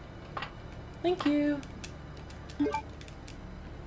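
A short electronic chime sounds.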